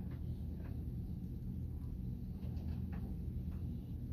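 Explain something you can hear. A small metal bowl clinks softly as a hand touches it.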